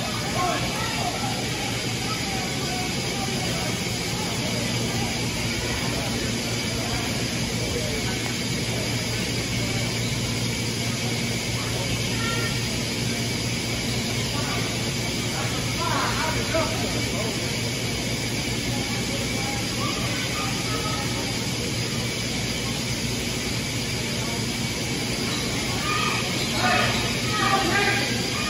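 Players talk and call out across a large echoing gym.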